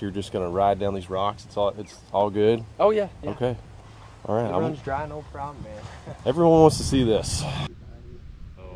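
A young man speaks casually outdoors, close by.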